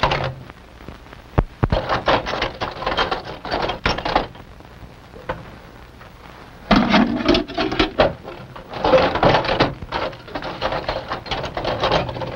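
Metal tools clatter and clink in a case.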